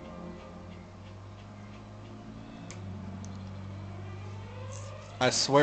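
Video game music plays softly through a television speaker.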